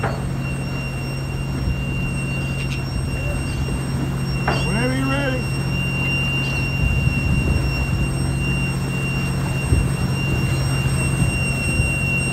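Water splashes and rushes against a hull.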